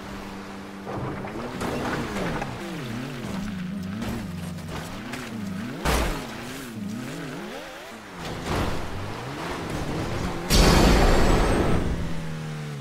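A car engine revs and whines up and down.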